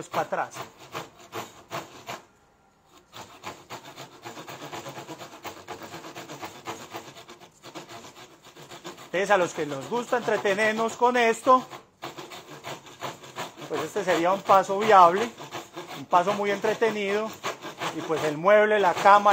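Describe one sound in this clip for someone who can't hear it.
A hand saw cuts through wood with rapid strokes.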